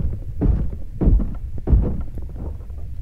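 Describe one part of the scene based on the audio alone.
Heavy blows thud dully against rock.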